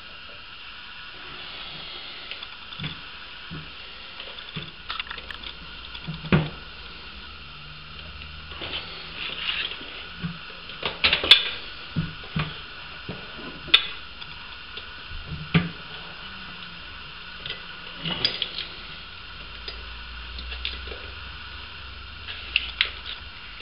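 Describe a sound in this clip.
A metal hose clicks and knocks against pipe fittings as it is handled.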